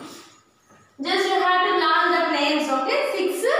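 A woman speaks clearly and with animation, close by.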